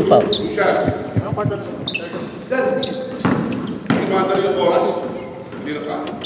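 Young men talk and call out across the hall.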